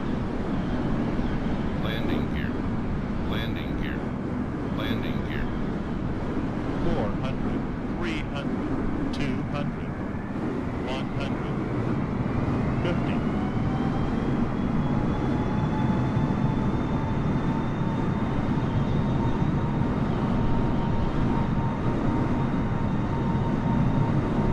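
A jet airliner's engines roar steadily as it flies low.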